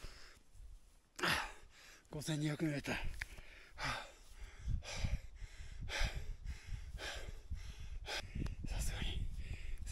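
Clothing rustles as a man stretches and pulls at his jacket.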